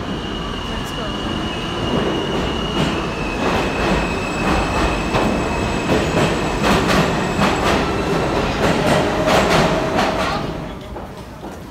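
A subway train rumbles loudly into an echoing station and slows to a stop.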